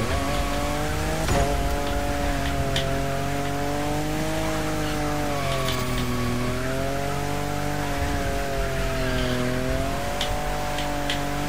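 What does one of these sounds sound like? Tyres screech.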